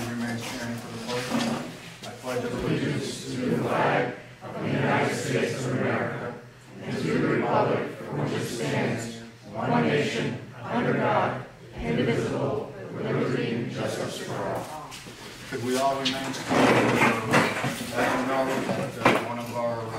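A group of men and women recite together in unison.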